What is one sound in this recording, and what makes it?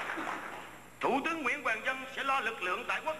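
A man speaks with emphasis into a microphone, heard over loudspeakers in a large echoing hall.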